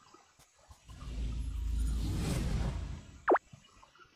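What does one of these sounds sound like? A magical whoosh swells as a game character teleports away.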